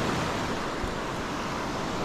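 A fishing reel clicks as its handle is cranked.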